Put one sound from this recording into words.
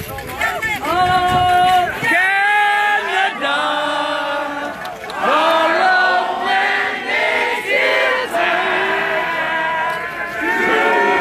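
A woman shouts loudly into a microphone, heard over a loudspeaker outdoors.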